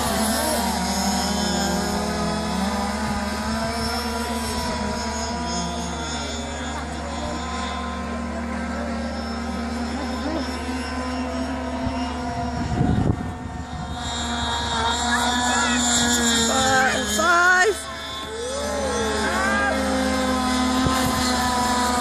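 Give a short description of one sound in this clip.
A model boat's motor whines at high pitch, rising and falling as it races across the water.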